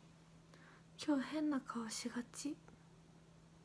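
A young woman speaks briefly and softly, close to a microphone.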